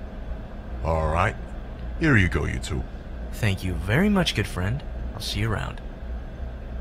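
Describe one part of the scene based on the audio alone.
A young man speaks playfully, close by.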